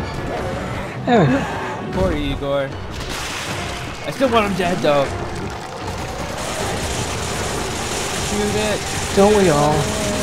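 A huge creature roars and growls loudly.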